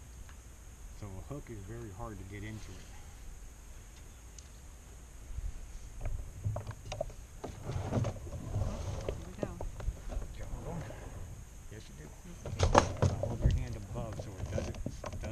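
A man talks casually, close by, outdoors.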